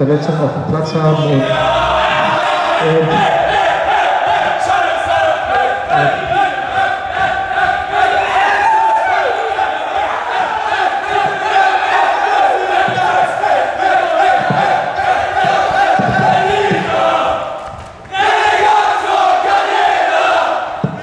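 A group of men shouts, cheers and sings loudly together.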